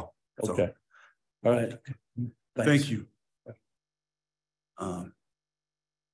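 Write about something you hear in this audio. A man speaks calmly and haltingly into a nearby microphone.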